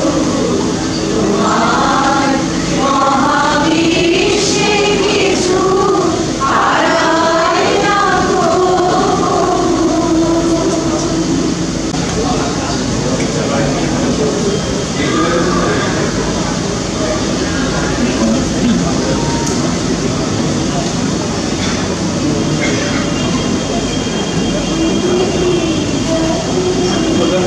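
A crowd of men and women murmur and talk in low voices nearby.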